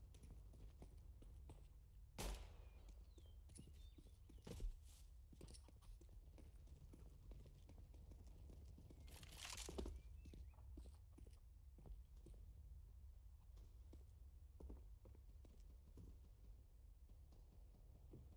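Footsteps patter steadily on hard ground.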